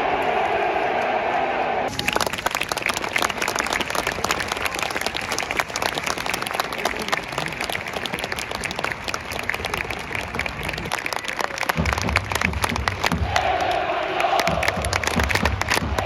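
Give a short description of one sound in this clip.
A large stadium crowd cheers and chants outdoors.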